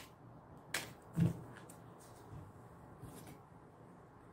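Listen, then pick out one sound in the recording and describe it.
A card is laid down on a table with a light tap.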